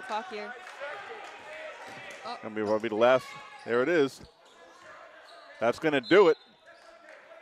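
Spectators shout and cheer loudly in an echoing gym.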